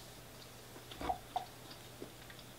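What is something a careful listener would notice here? A can is set down on a table with a knock.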